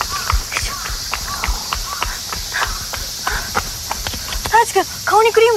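Footsteps tap on a paved path.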